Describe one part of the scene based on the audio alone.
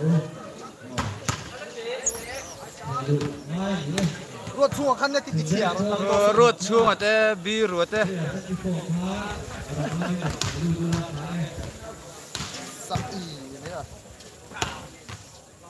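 A volleyball is slapped hard by hands, with sharp smacks.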